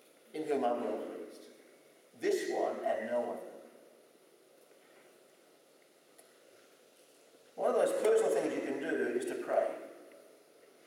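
A middle-aged man speaks calmly into a microphone in a reverberant hall.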